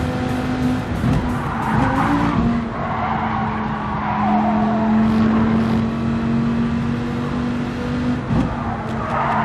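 A race car engine drops in pitch as the gears shift down.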